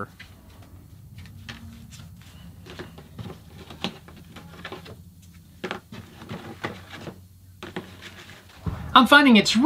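Leather pieces rustle and flap as hands pull them free.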